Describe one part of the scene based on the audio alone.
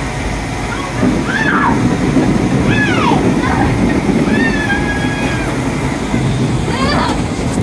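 Plastic balls rattle and bounce against the walls of a game machine.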